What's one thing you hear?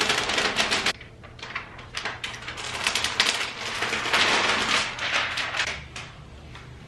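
Plastic film crinkles and rustles as it is peeled away.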